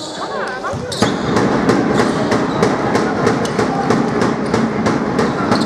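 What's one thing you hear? A basketball bounces steadily on a wooden floor in an echoing hall.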